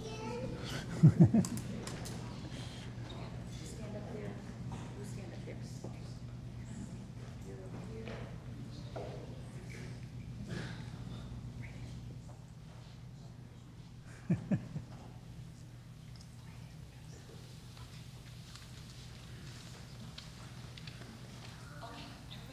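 Children chatter quietly in a large echoing hall.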